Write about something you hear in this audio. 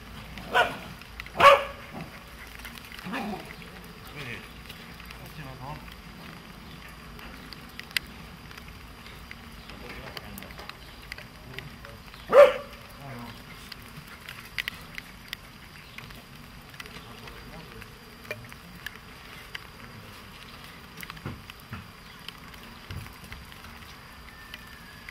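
Footsteps tap on a wet pavement.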